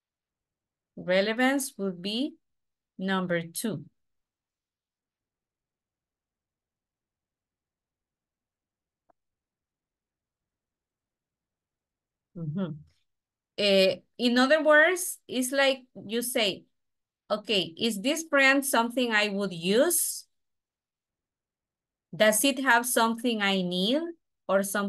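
A woman speaks calmly through an online call, with pauses.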